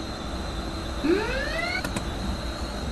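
An electric train's motor whines, rising in pitch.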